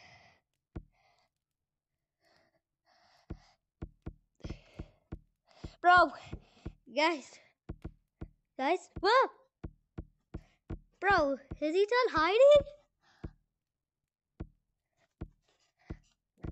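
Footsteps knock on a hollow wooden floor.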